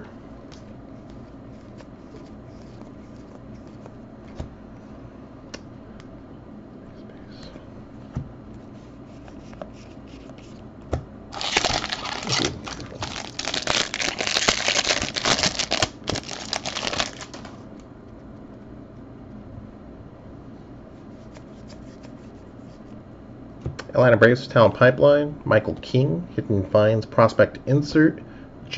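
Cardboard cards slide and flick against each other as a hand sorts through a stack.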